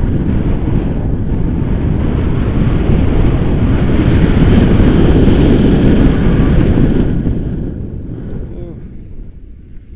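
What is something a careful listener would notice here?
Wind rushes loudly past a microphone, growing stronger and then easing off.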